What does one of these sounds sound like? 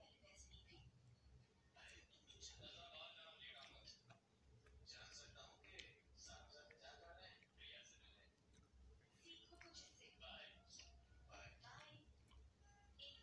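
A young woman chews and smacks her lips loudly up close.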